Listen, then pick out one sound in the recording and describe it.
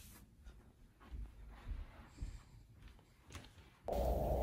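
Footsteps walk across a floor.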